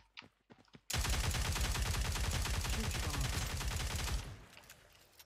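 A submachine gun fires in a rapid automatic burst.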